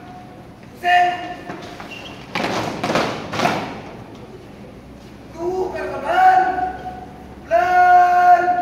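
A young man shouts marching commands loudly.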